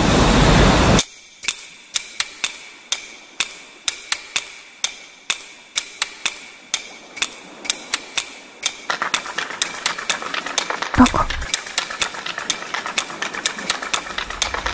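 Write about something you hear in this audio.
Sharp game hit sounds click in a quick, steady rhythm.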